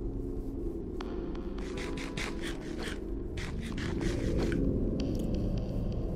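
Someone chews and munches food in quick bites.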